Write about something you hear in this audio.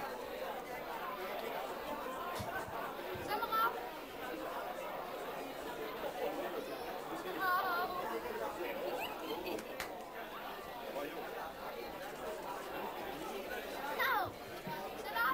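A young boy talks cheerfully nearby.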